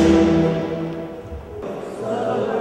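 A woman sings into a microphone.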